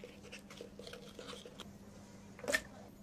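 Syrup squirts from a squeeze bottle into a cup.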